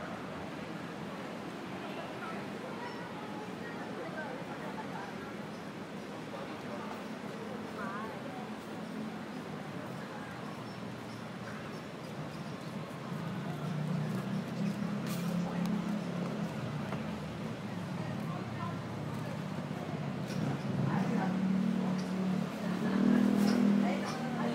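A busy street murmurs with distant voices outdoors.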